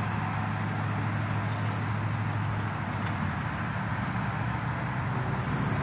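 An ambulance engine idles with a steady low rumble nearby.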